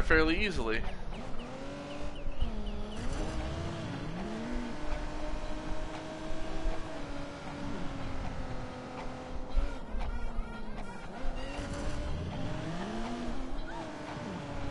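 A car engine revs hard, rising and falling in pitch as gears change.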